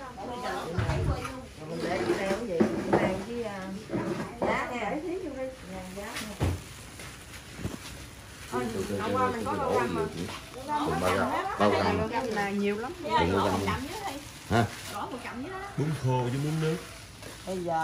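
Several middle-aged women chat with animation close by.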